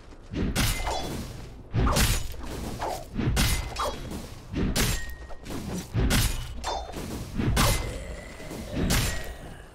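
Weapons strike and spells burst in a fight, in repeated loud bursts.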